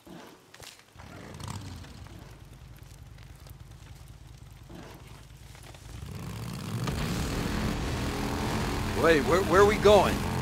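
Motorcycle engines rumble steadily, then rev louder as the bikes ride off.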